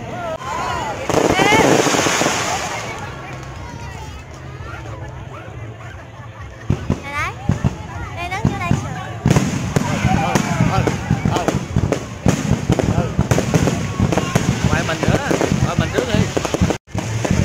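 Fireworks bang and crackle overhead.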